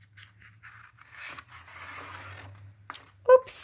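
A book page rustles as it is turned.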